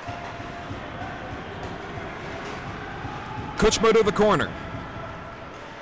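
Skates scrape across an ice rink.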